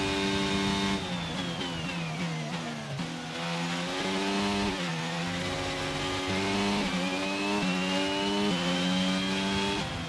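A racing car engine drops sharply in pitch, then climbs again through quick gear shifts.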